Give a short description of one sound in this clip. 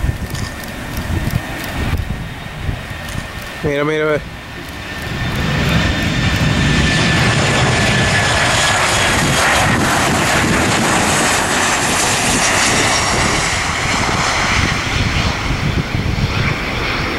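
A jet airliner roars loudly as it passes close by, coming in to land.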